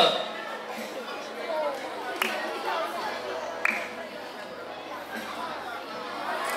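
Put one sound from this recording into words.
A man speaks calmly into a microphone, heard through loudspeakers in an echoing hall.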